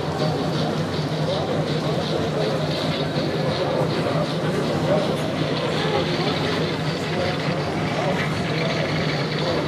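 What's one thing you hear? A small model locomotive hums and clatters along its track.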